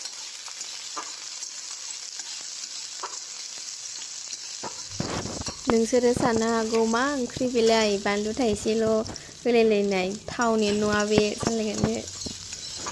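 A metal spatula scrapes and clinks against a metal wok.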